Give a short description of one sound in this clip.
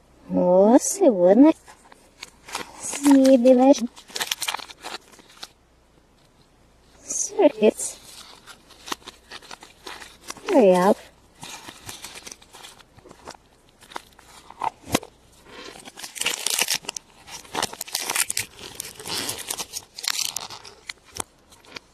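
A plastic capsule clicks open.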